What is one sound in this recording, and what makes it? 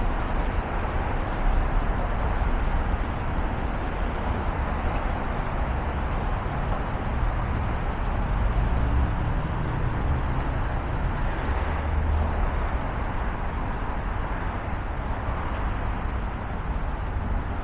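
A city bus engine idles and rumbles close by.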